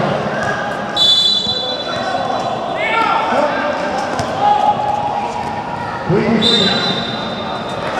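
A whistle blows in a large echoing hall.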